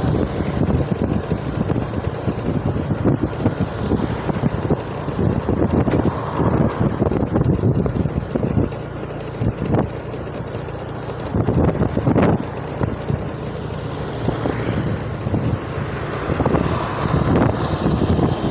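Wind rumbles and buffets steadily, as if heard from a moving motorbike.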